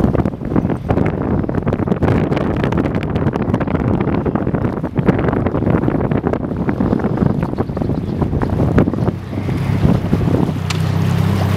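Wind buffets the microphone outdoors on open water.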